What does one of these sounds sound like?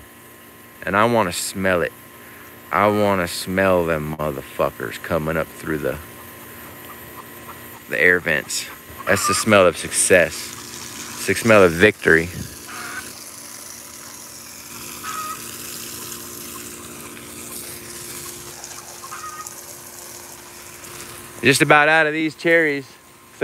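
Water sprays from a hose and patters onto leaves and soil.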